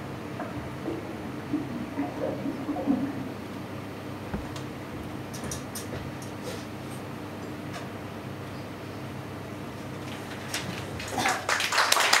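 Water bubbles gently inside a glass vessel.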